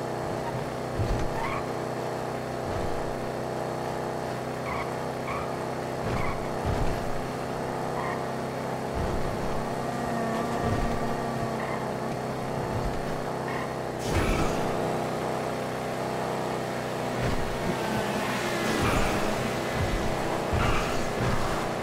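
Car tyres bump and rumble over rough ground.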